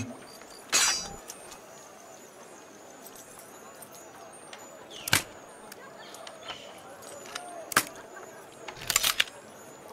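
A lock clicks as it is picked.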